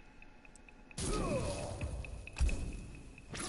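Flames burst with a roaring whoosh.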